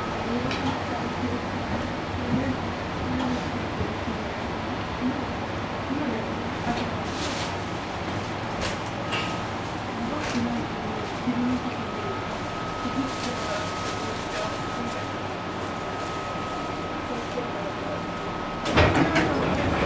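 Passengers murmur quietly nearby.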